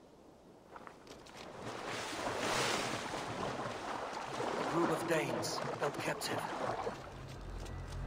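Water splashes as someone swims through it.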